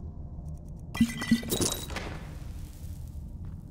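A magic blast whooshes and crackles loudly.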